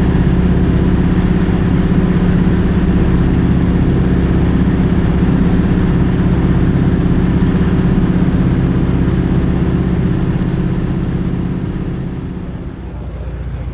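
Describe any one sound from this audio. A small propeller plane's engine drones loudly and steadily in flight.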